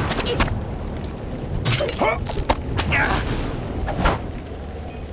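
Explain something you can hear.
Blades clash and strike in a short fight.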